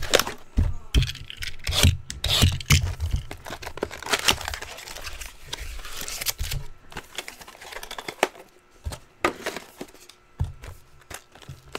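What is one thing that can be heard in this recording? A cardboard box is handled and knocked on a table.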